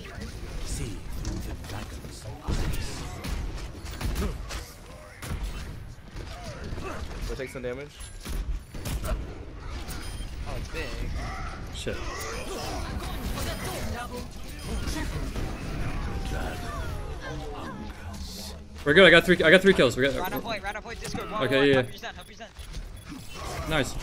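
Video game bow shots twang and thud repeatedly.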